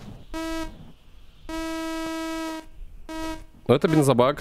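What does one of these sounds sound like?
A metal detector beeps in steady tones.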